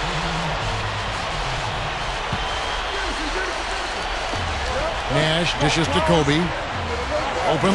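A crowd murmurs and cheers steadily in a large echoing arena.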